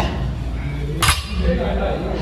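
Weight plates clank as a barbell is lifted.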